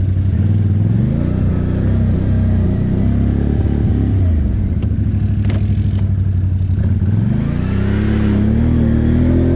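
Water splashes under tyres driving through deep puddles.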